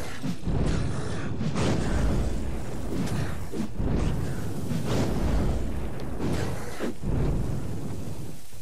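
Magic blasts burst and roar in a fight.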